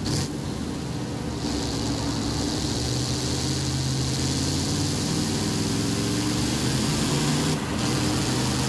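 A truck engine hums steadily and revs higher as it speeds up.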